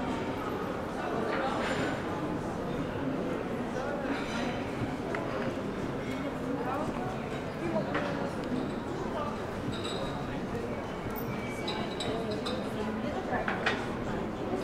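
People chatter in a low murmur outdoors.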